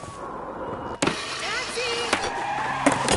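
A skateboard grinds along a wooden bench.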